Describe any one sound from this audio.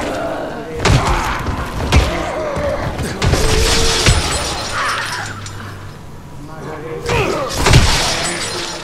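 A club strikes a body with heavy, wet thuds.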